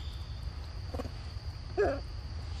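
A young monkey gives a short squeal close by.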